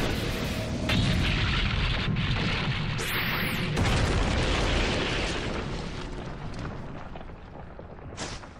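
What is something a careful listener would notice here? A deep explosive rumble roars and slowly fades.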